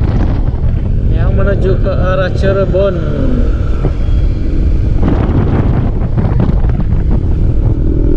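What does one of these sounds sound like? Wind roars loudly against the microphone.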